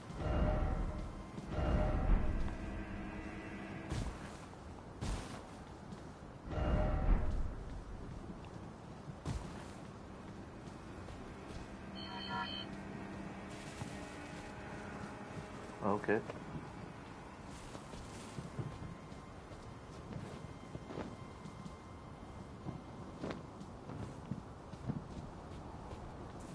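Footsteps crunch on stone and gravel.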